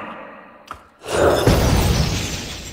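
A sparkling magical burst whooshes.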